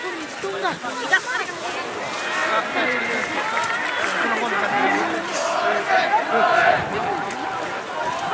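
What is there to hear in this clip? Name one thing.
A large crowd of spectators cheers and shouts in an open stadium.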